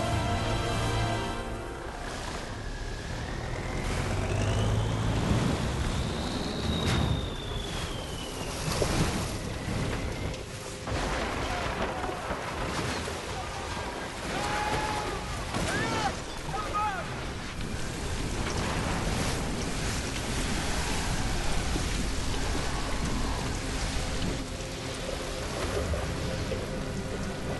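Heavy rain pours and wind roars outdoors.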